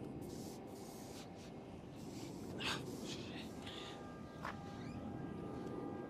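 Footsteps tap on a tiled floor.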